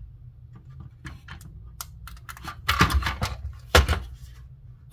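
Plastic casing parts click and rattle as they are pried apart.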